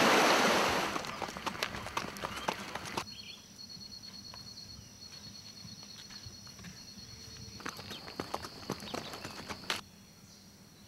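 Hooves clop on a dirt track.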